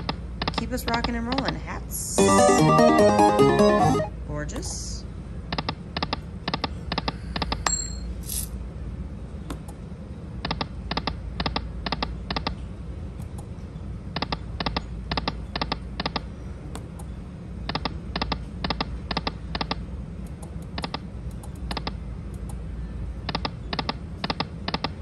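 Slot machine reels tick rapidly as they spin and stop.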